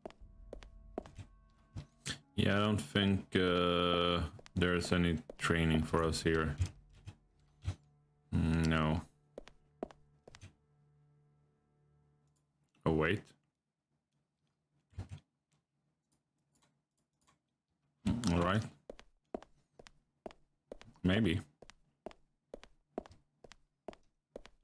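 Footsteps tap on stone at a steady walking pace.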